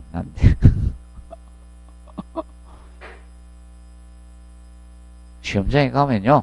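A man speaks through a close microphone, lecturing with pauses.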